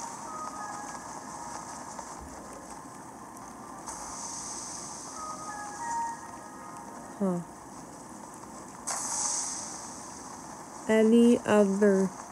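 Wind rushes softly past a glider sailing through the air.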